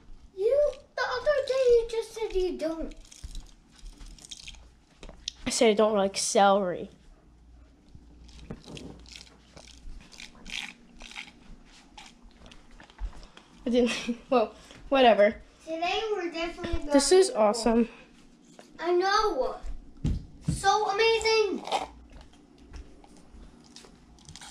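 A girl sips a drink loudly through a straw.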